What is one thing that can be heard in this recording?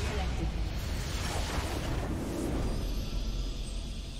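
A large game explosion booms.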